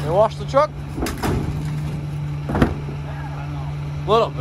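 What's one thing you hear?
A plastic wheeled bin rolls and bumps over pavement.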